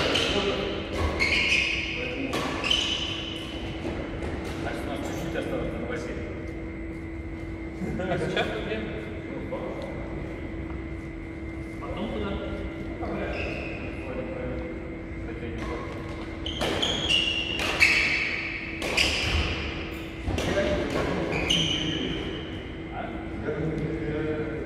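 Men talk to each other casually in a large echoing hall.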